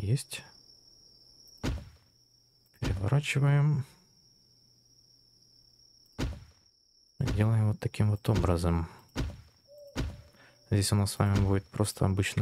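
A short game sound clicks as a wall piece is placed.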